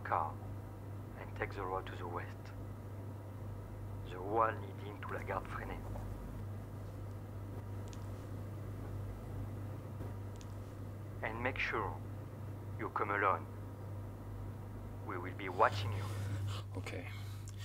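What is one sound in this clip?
A young man speaks quietly and hesitantly, close by.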